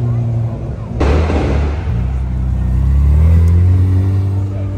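An engine roars in a sudden hard rev.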